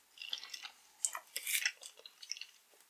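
A candy wrapper crinkles close to a microphone.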